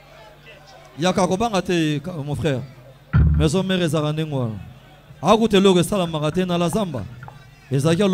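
A man sings loudly into a microphone over loudspeakers.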